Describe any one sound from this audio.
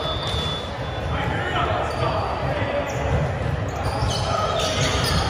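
Young people chatter and call out in a large echoing hall.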